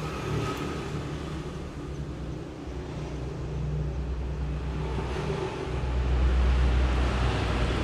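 An amplifier hums with a low, steady buzz that grows louder toward the end.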